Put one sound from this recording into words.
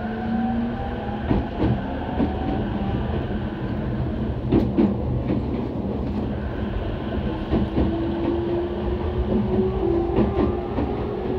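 An electric commuter train rolls along with a low rumble.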